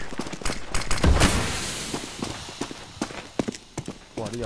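A smoke grenade bursts and hisses.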